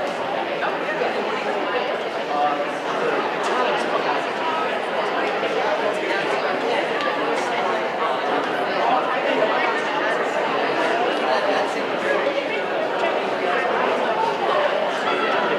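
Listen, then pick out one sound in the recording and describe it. A large crowd murmurs and chatters in an echoing hall.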